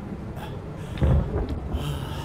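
A gunshot bangs loudly inside a car.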